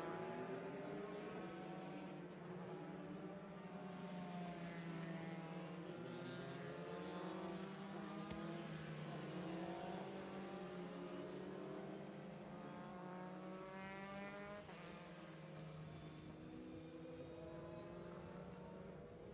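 Racing car engines whine and rise and fall in pitch as they pass.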